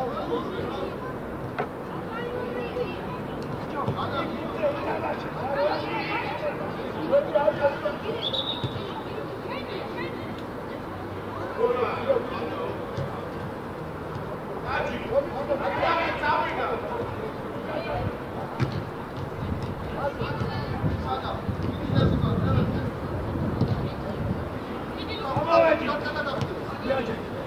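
Young players shout and call to each other across an open outdoor pitch.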